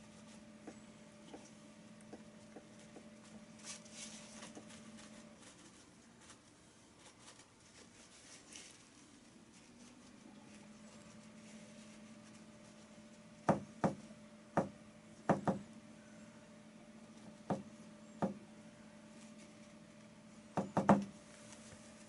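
A paintbrush dabs and brushes softly on canvas.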